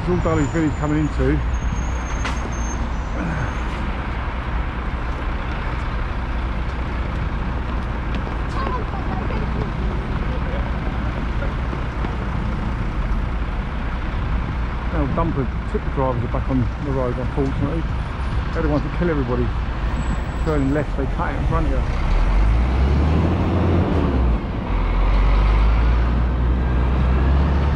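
A motorcycle engine hums steadily close by and grows louder near the end.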